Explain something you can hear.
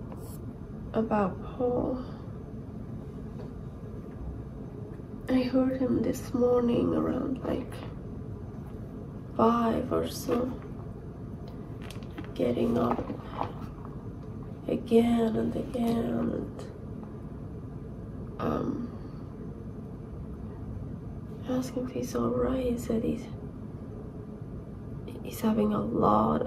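A woman speaks calmly in short phrases close by, with pauses between them.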